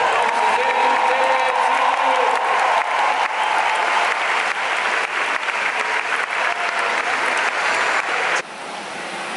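A large crowd murmurs and cheers in a big open arena.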